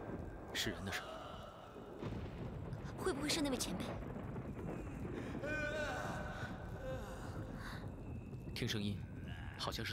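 A young man speaks quietly and seriously.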